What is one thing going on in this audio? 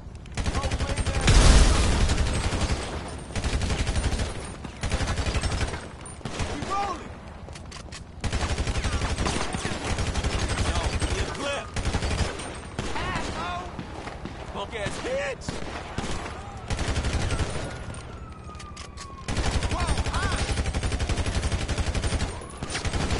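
Gunshots ring out repeatedly.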